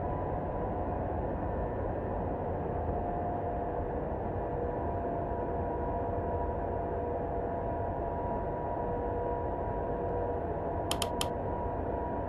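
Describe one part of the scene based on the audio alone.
A jet airliner's engines hum steadily from inside the cockpit.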